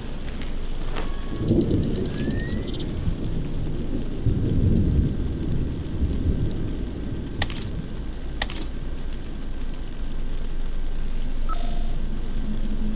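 A handheld device beeps and clicks.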